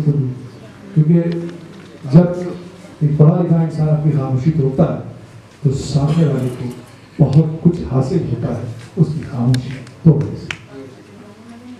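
A man speaks through a loudspeaker in a large hall.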